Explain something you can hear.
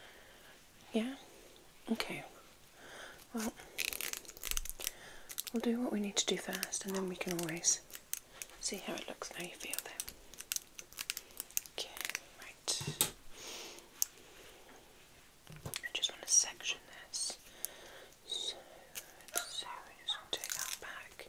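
A comb scrapes and taps right against a microphone.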